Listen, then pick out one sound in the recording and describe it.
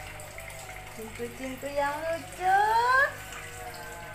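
A cat meows loudly with rising cries nearby.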